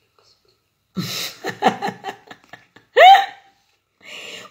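An older woman laughs warmly.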